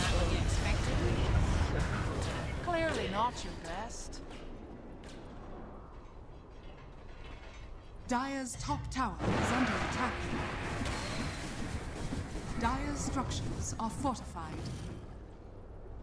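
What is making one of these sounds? Spell effects and blows clash and crackle in a fast fight.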